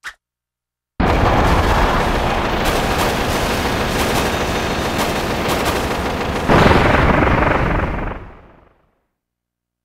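A large explosion roars and crackles, then fades away.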